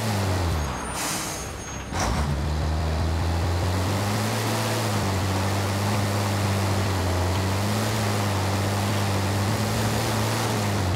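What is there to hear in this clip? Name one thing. Tyres crunch over sand and gravel.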